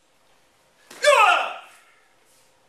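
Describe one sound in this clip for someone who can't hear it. A man lets out a short, loud shout.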